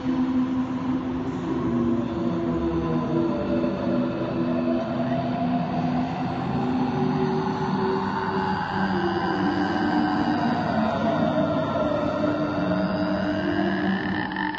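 A young man sings along in harmony.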